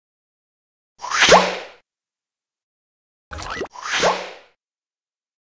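A quick rising whoosh sounds as cartoon blocks snap together.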